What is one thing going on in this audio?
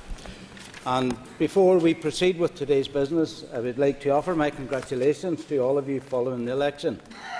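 An elderly man reads aloud calmly through a microphone.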